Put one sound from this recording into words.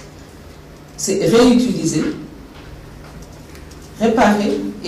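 A woman speaks calmly into a microphone in short phrases.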